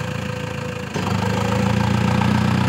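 A tractor engine revs louder as the tractor pulls away.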